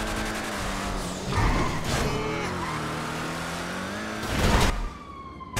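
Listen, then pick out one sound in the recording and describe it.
A vehicle engine hums and revs.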